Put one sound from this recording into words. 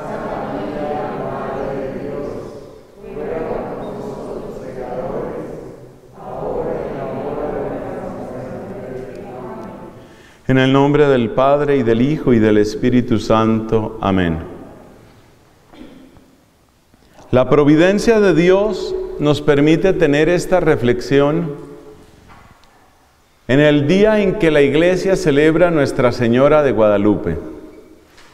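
A man sings a chant loudly through a microphone in an echoing hall.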